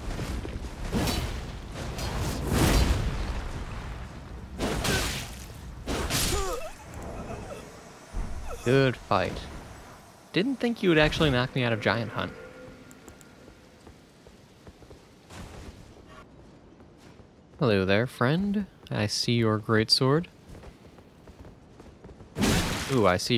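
Swords clash and slash in quick, sharp strikes.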